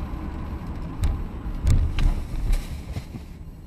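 A tanker truck and a car collide with a heavy crunch.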